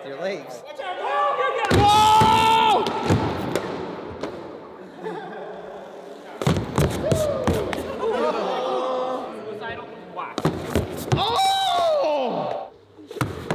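Young men shout and cheer loudly in an echoing hall.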